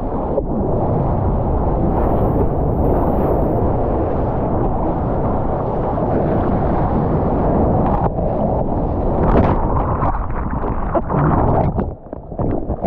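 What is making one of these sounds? A breaking wave roars and churns in whitewater close by.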